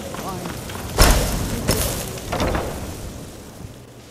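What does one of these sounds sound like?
A heavy wooden door creaks and thuds open.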